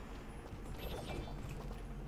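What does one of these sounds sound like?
A sword swooshes through the air.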